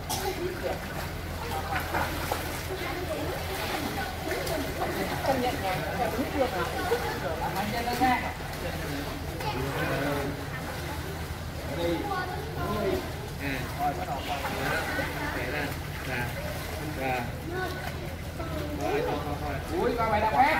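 Children splash and kick in water.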